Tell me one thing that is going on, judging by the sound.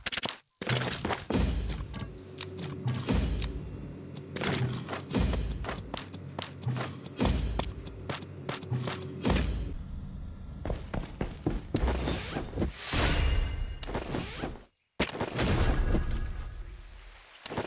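Gear clicks and rattles as items are moved and picked up.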